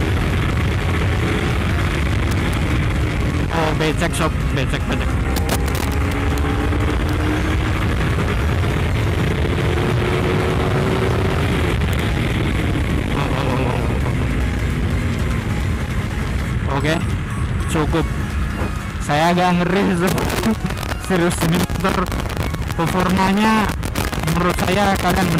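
A motorcycle engine roars and revs up as the bike accelerates.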